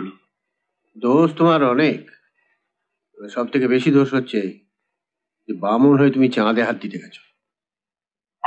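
An older man speaks firmly close by.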